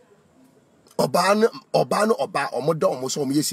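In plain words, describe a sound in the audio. A man speaks loudly and with animation, close to the microphone.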